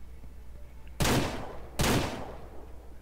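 Two pistol shots crack sharply.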